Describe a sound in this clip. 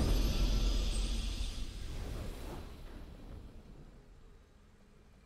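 A triumphant game fanfare rings out and slowly fades.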